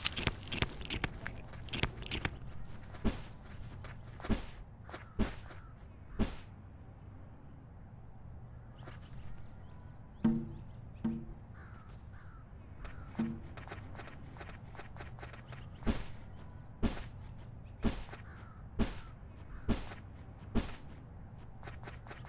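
An animal's footsteps patter in short, regular thumps.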